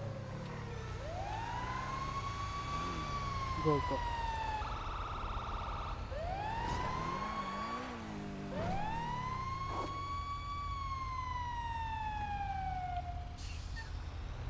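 A siren wails, rising and falling.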